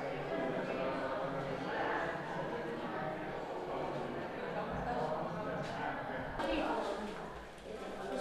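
Children and adults chatter in a lively murmur nearby.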